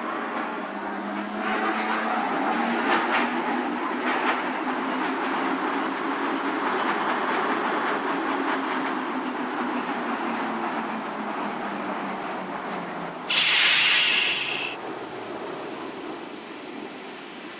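A subway train rumbles into a station and slows to a stop.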